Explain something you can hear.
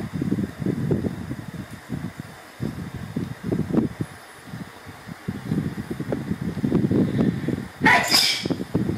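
A small monkey taps on a laptop keyboard.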